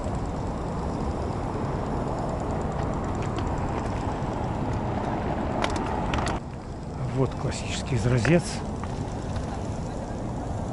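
Wind blows outdoors in an open space.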